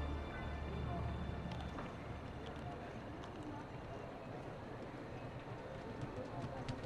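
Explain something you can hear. Wind rushes past loudly during a fast leap.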